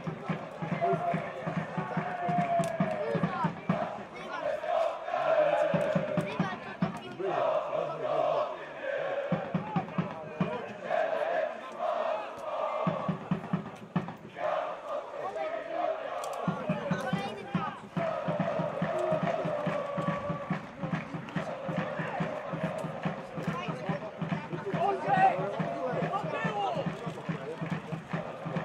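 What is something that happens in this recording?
A crowd of spectators chatters nearby outdoors.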